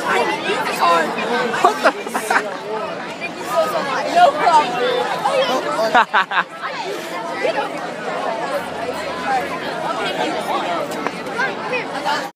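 A crowd of young people chatters and shouts all around outdoors.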